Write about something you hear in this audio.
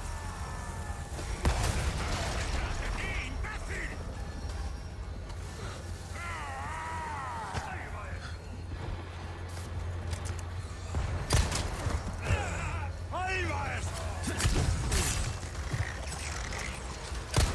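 A man shouts and groans angrily.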